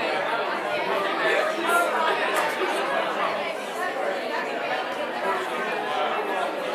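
A crowd of men and women chat in overlapping voices in an echoing hall.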